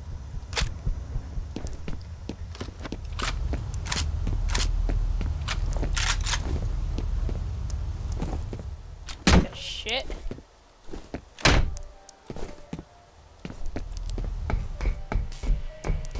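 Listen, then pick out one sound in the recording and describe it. Footsteps clank on a metal floor.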